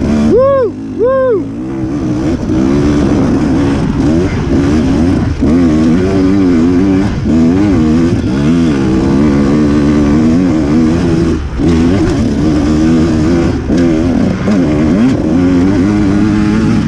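A dirt bike engine revs up and down close by, rising and falling constantly.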